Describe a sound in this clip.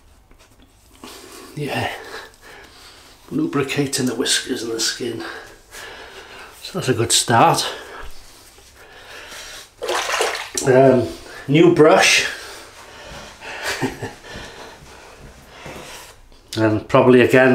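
A middle-aged man talks close to the microphone with animation.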